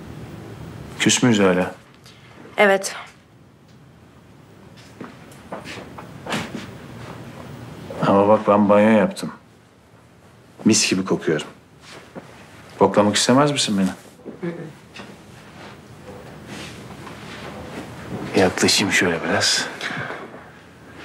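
A man speaks calmly nearby in short phrases.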